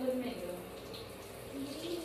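Water runs onto hair and drips into a bathtub.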